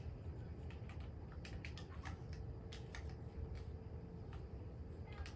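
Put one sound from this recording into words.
Game building pieces snap into place with quick sharp clicks.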